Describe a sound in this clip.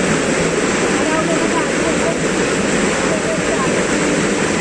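Young men call out to each other over the rushing water.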